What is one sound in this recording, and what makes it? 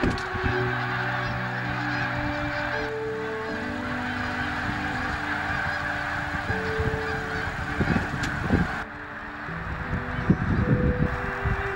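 Many wings beat as a flock of geese flies past.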